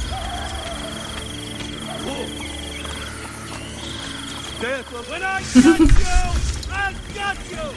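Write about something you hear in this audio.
Footsteps run quickly over stone.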